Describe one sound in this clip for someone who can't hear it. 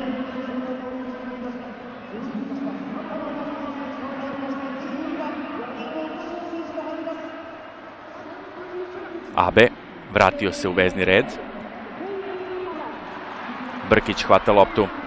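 A large stadium crowd chants and sings steadily.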